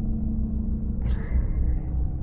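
A soft menu sound plays as a map opens.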